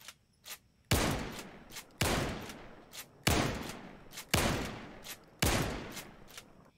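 A shotgun fires several loud blasts.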